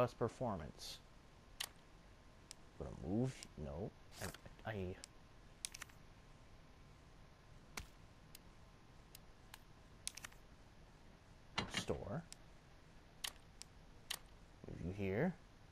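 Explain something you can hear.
Short menu clicks tick now and then.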